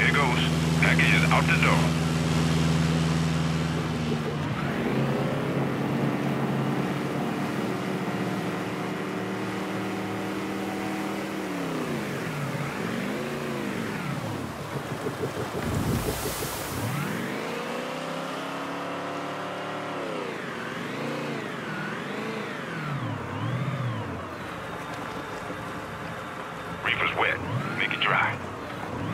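A motorboat engine drones and revs, its pitch rising and falling as the boat speeds and turns.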